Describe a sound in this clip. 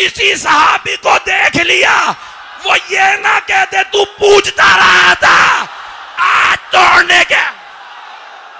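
A middle-aged man shouts passionately into a microphone.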